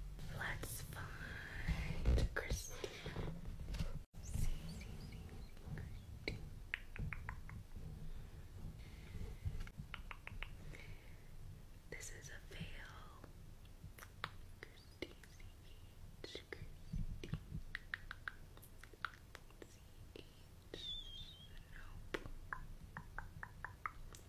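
A pen taps and scratches lightly on paper close by.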